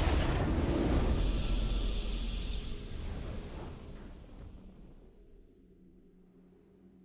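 A triumphant game fanfare swells and then slowly fades away.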